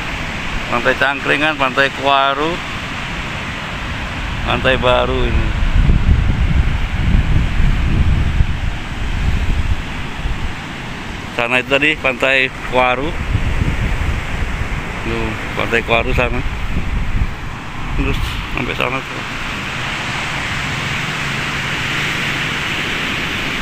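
Surf breaks and rushes onto a sandy beach.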